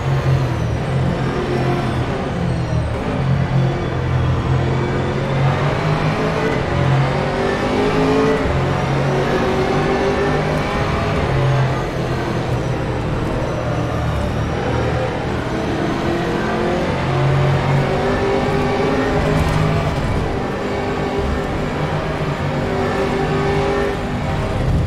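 A racing car engine roars steadily, its pitch rising and falling as it shifts gears.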